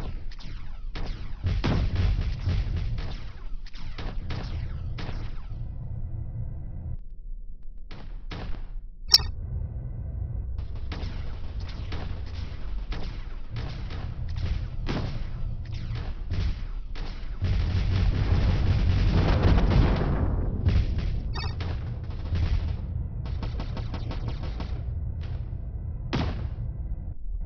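A spacecraft engine rumbles low and steadily.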